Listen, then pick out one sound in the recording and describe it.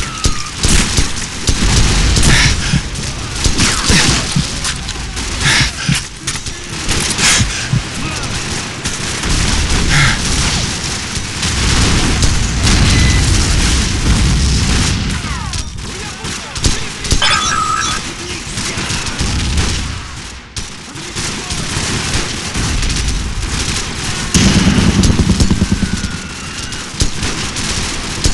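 Sniper rifle shots crack loudly, one at a time.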